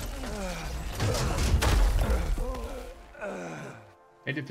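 A man groans and speaks with strain.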